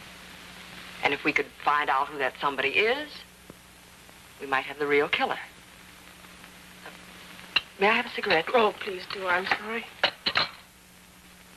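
Another woman answers in a low, measured voice.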